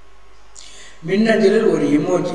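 A man speaks calmly into a nearby microphone.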